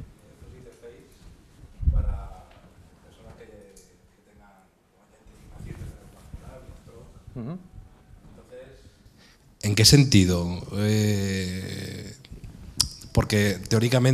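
A man speaks to an audience through a microphone in an echoing room.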